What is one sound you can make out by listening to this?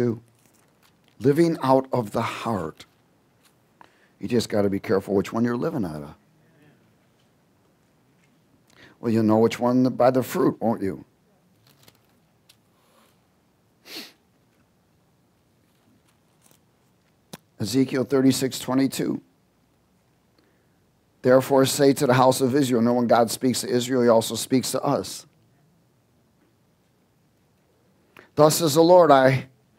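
A man speaks calmly into a headset microphone, with long pauses between phrases.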